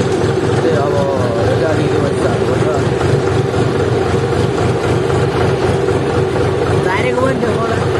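A tractor engine chugs and rumbles steadily up close.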